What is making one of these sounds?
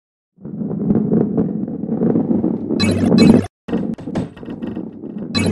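A ball rolls with a low, steady rumble over a wooden track.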